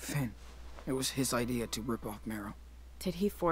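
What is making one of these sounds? A young man speaks quietly and calmly.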